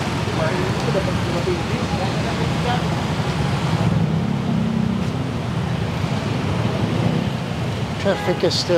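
Scooter-type motorcycles putter along in slow traffic.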